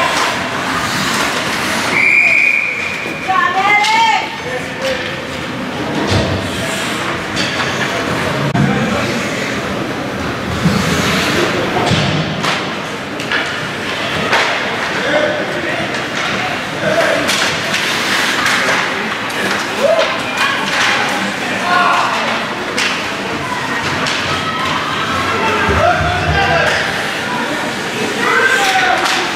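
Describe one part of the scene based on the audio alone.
Skates scrape and glide across the ice in a large echoing rink.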